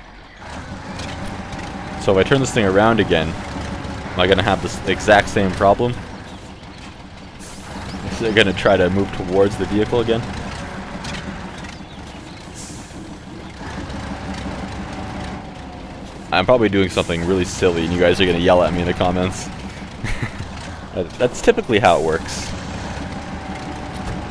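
A heavy truck engine rumbles and labours as the truck crawls through mud.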